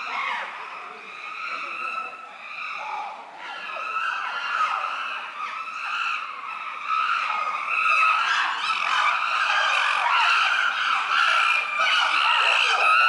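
Chimpanzees hoot and scream loudly, building in excitement.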